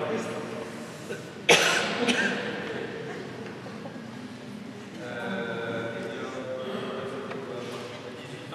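An organ plays a slow, soft melody in a large echoing hall.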